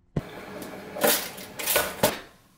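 A toaster lever clicks down.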